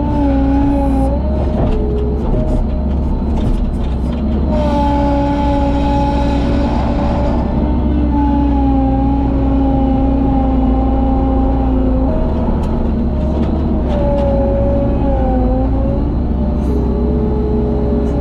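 A diesel engine rumbles and whines steadily, close by.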